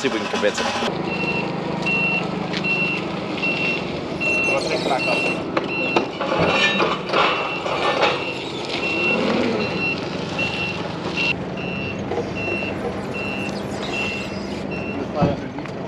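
A reversing alarm beeps steadily and repeatedly.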